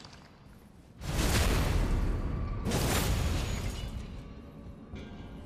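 A blade slashes and strikes a creature.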